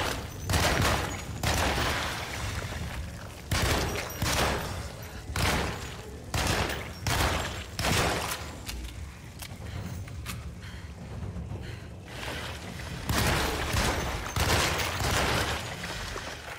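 Gunshots fire in loud, repeated bursts.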